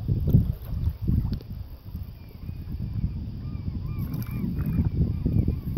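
Water laps gently against a paddleboard.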